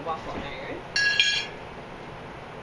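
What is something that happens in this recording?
A metal fork clinks onto a ceramic plate.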